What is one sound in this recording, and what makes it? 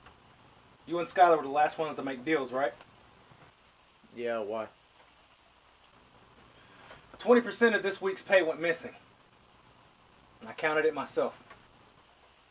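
A man with a deeper voice answers close by.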